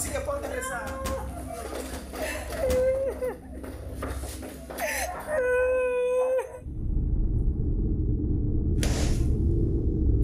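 Men shove and bump a wooden chair about.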